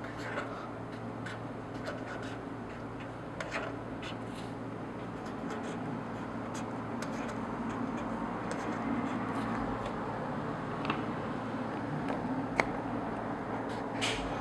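A marker pen squeaks and scratches on paper.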